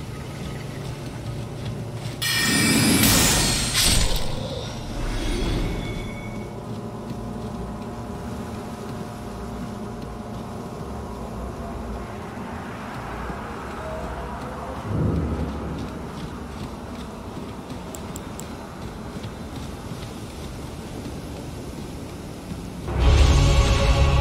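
Footsteps run through dry grass.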